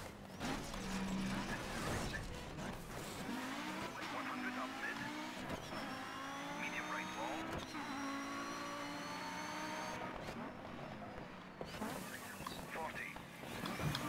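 Tyres skid and scrape on a slippery road.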